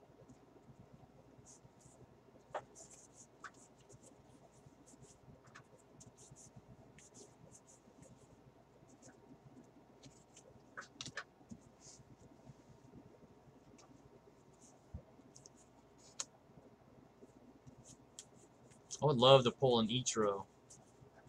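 Trading cards slide and flick against each other in a hand.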